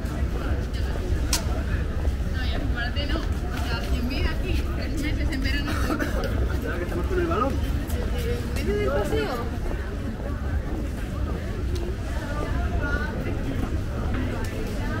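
Young men and women talk casually nearby.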